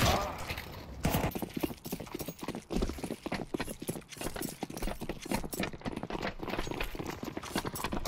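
Footsteps run on concrete.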